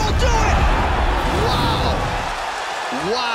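Heavy punches thud on a body.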